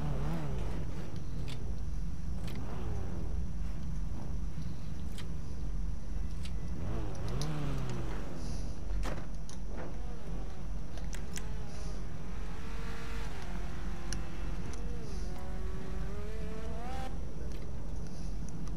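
A car engine idles and revs up and down.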